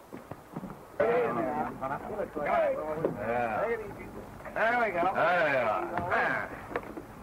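Several men talk and call out together.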